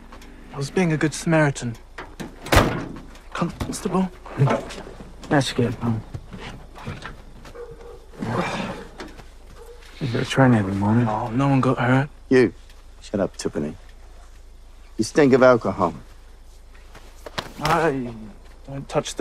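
A young man speaks defensively, close by.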